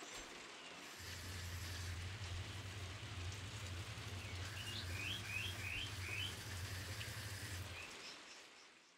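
A pump hums steadily outdoors.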